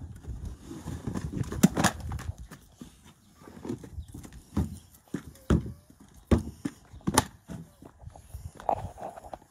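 A rubber mat thumps and flaps as it is shaken and knocked against the ground.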